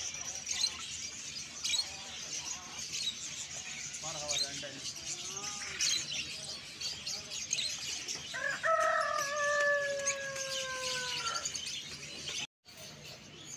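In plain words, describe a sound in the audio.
Many small birds chirp and twitter busily.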